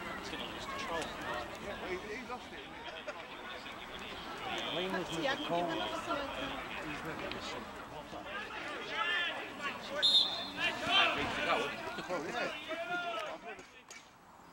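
Adult men talk and call out nearby, outdoors.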